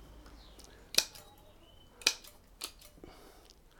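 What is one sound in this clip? Pruning shears snip twigs.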